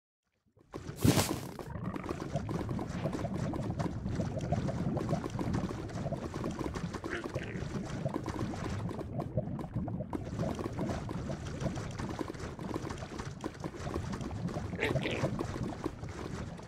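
Lava bubbles and pops steadily.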